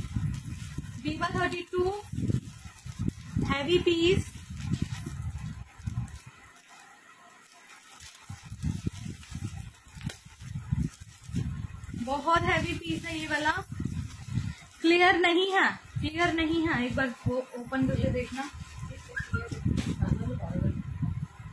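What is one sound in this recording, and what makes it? A young woman talks close by, with animation.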